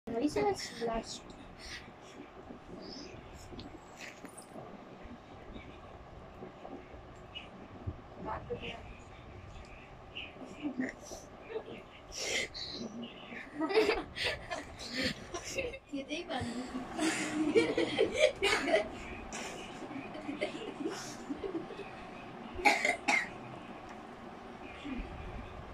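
Children talk and laugh nearby.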